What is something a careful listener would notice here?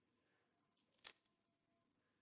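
A woman bites into a crisp baked cone.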